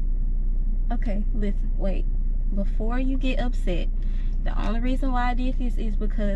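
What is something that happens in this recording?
A girl talks close by.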